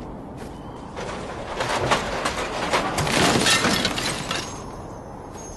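Metal debris crashes and clatters as a wreck breaks apart.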